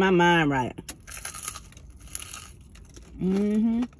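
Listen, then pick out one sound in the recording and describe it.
A woman crunches on crispy food.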